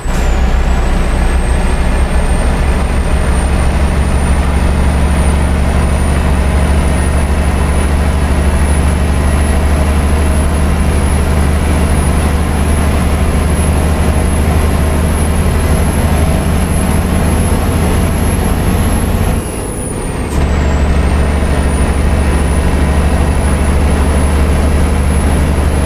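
A truck engine drones steadily from inside the cab.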